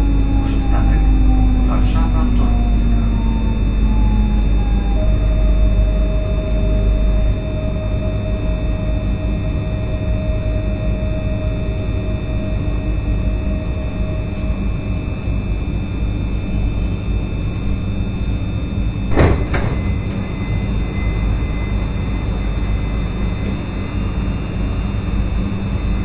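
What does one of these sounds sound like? Traffic rumbles steadily on a road overhead.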